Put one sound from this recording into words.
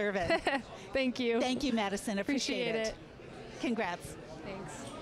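A young woman speaks cheerfully into a microphone, close by.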